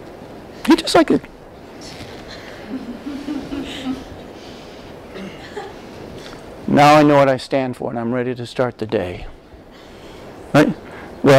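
A middle-aged man speaks calmly into a lapel microphone in a room with a slight echo.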